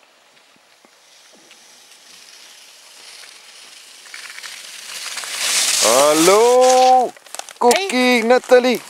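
Skis hiss and scrape across snow, coming closer.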